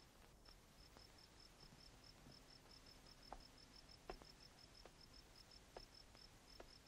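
Footsteps thud on wooden rungs as a man climbs a ladder.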